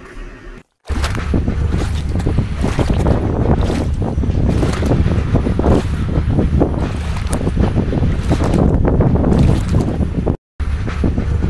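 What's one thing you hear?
Water splashes and rushes hard against a ship's hull.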